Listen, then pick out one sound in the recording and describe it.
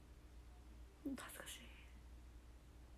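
A young woman giggles softly close to a microphone.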